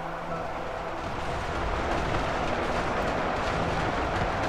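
Aircraft engines drone overhead.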